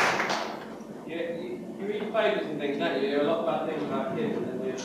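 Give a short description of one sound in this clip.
A man speaks calmly in an echoing hall.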